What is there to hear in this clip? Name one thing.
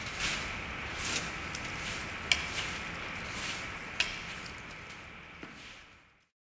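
Boots scuff and step on a hard floor.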